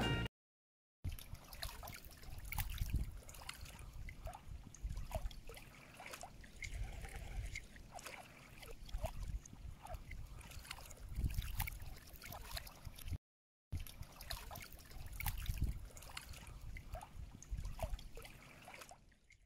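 Small waves lap gently against a shore outdoors.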